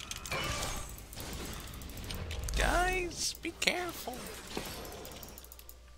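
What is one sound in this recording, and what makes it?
Magic spell effects whoosh and sparkle in a video game.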